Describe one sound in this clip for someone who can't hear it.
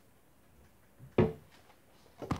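A cupboard door bangs shut.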